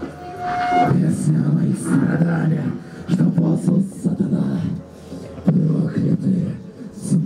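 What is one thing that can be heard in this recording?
Electric guitars play loud distorted riffs.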